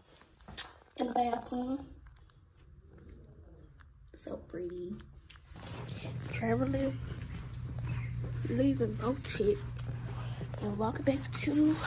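A young woman speaks casually close to a phone microphone.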